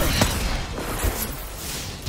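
Bullets splash into water.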